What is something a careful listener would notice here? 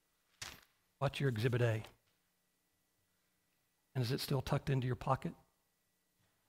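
A middle-aged man speaks with emphasis through a microphone, pausing between phrases.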